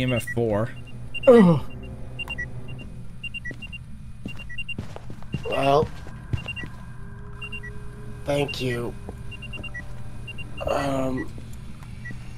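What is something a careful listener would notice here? A man talks in short bursts with animation, close to a microphone.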